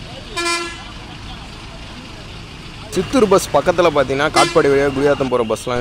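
A diesel bus pulls in.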